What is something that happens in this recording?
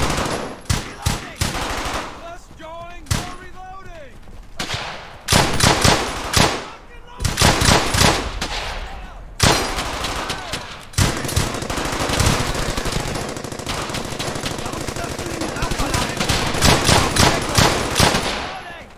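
Rifles fire in sharp bursts of gunshots.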